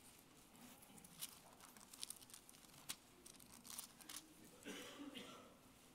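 Paper rustles as a page is turned.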